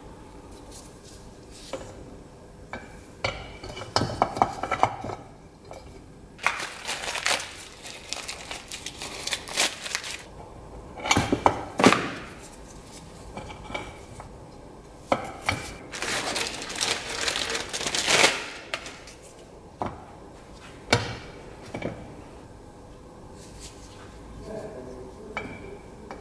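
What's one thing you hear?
Rubber hoses and metal parts knock and rattle as they are handled.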